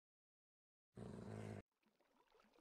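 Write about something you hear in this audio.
A wolf whines.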